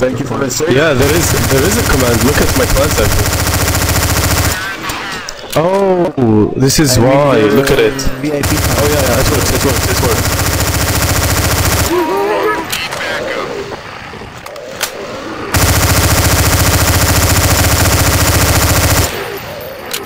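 An automatic rifle fires in long, rapid bursts.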